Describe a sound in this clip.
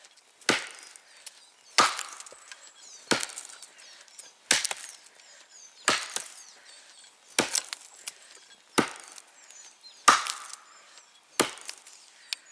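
An axe chops into wood with sharp, regular blows.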